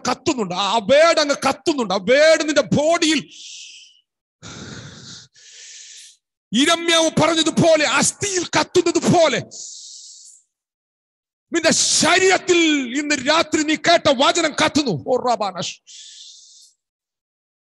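A middle-aged man speaks with animation, close into a microphone.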